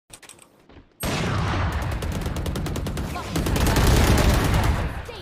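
Rapid gunfire rattles loudly, close by.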